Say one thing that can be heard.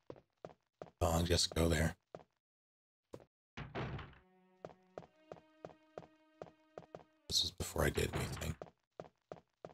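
A heavy door opens and slams shut.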